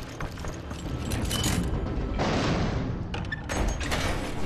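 A heavy metal gate rumbles and grinds as it slides open.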